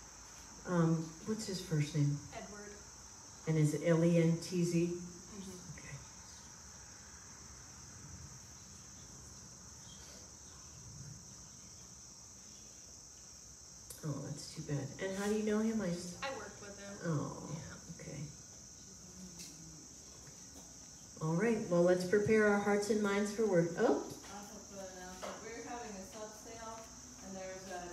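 An elderly woman speaks calmly and slowly into a microphone, heard through a loudspeaker, with pauses between phrases.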